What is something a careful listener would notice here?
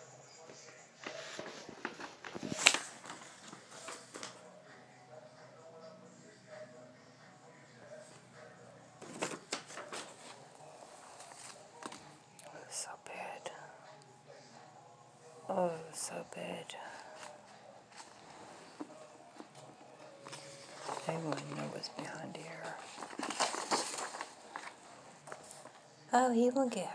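Paper sheets rustle and crinkle as pages are turned.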